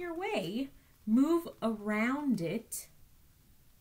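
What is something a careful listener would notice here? A young woman reads aloud in an animated, sing-song voice close to a microphone.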